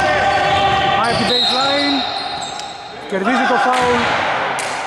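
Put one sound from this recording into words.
Sneakers squeak sharply on a court in a large echoing hall.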